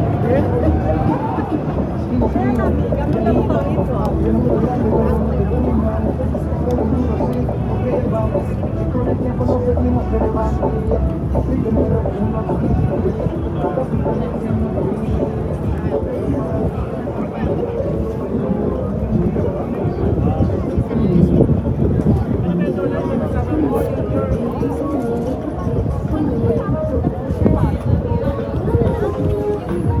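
A crowd of men and women chatter all around outdoors.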